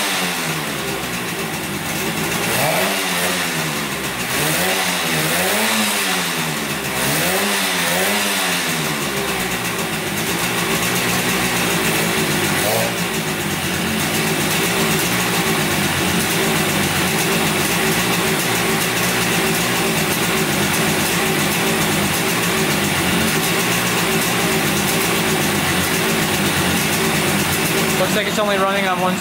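A motorcycle engine runs loud and close.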